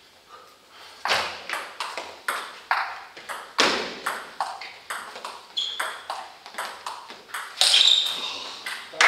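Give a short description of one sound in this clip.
A ping-pong ball clicks back and forth on paddles and a table in a quick rally.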